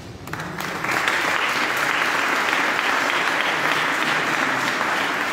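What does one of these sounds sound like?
A man's footsteps tap rhythmically on a stone floor in a large echoing hall.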